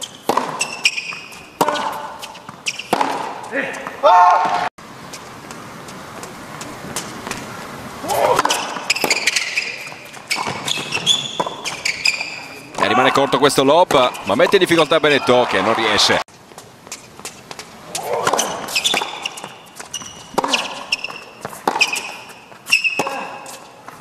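A tennis ball is struck sharply back and forth with rackets.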